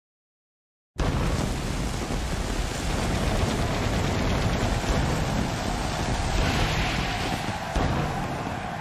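Stage fireworks hiss and crackle.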